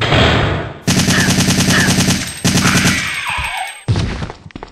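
A creature shrieks.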